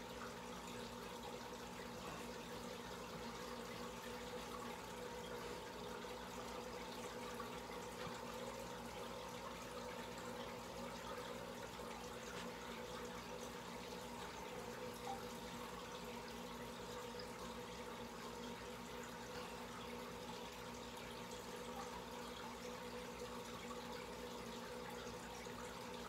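An aquarium air pump hums steadily.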